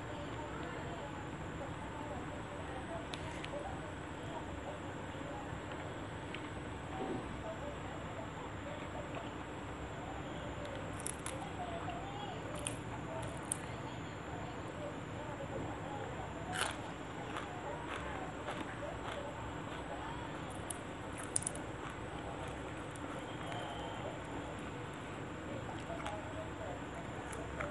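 A young woman chews food with her mouth close to a microphone.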